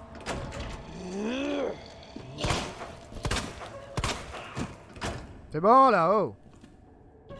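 A zombie lets out a rising, moaning groan.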